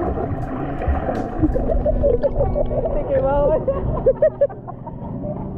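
Water sloshes and gurgles close by.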